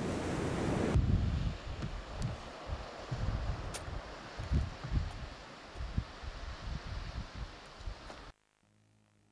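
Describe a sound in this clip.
A young man talks nearby, outdoors.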